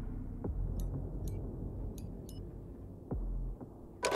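Soft menu clicks tick as options change.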